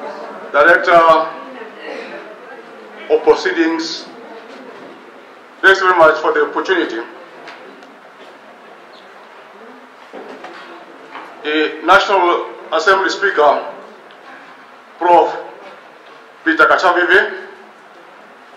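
An elderly man reads out slowly into a microphone, heard through a loudspeaker in an echoing hall.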